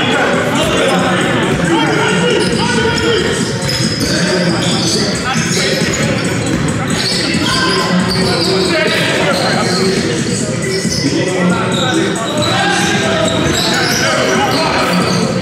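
Young men shout and call to each other in a large echoing hall.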